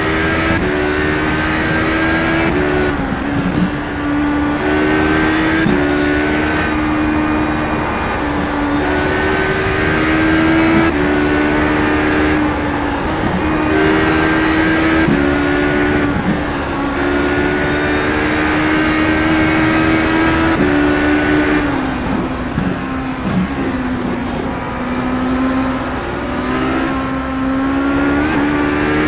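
A racing prototype engine screams at full throttle, shifting up through the gears.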